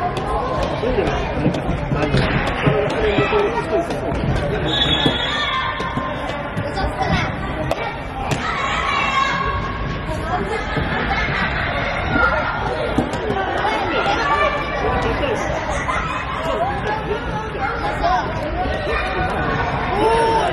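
Young children shout and call out in a large echoing hall.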